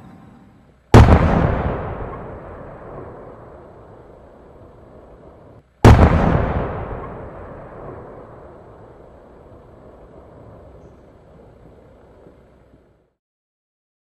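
Fireworks burst with deep booms that ring out and fade.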